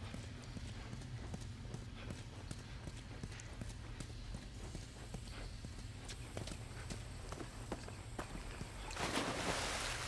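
Footsteps crunch over gravel and debris.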